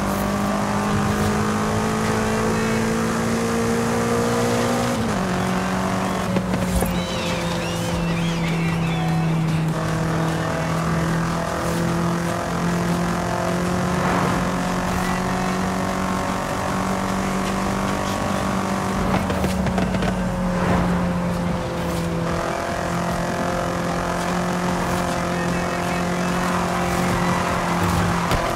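Tyres hiss on the road.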